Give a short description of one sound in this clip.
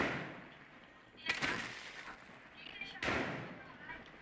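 Debris clatters and scatters after a blast.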